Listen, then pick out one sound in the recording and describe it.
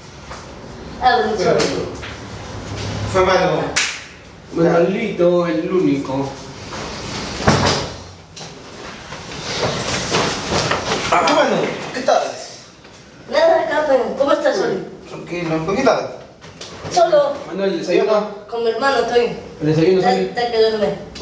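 A man talks loudly and with animation nearby.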